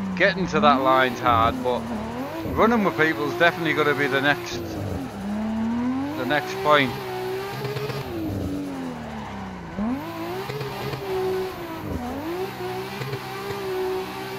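A racing car engine revs up and down as it drives.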